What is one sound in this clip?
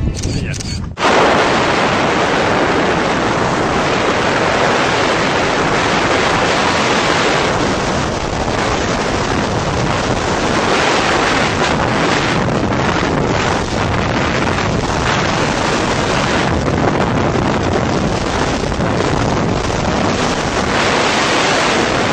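Wind roars loudly during a skydiving freefall.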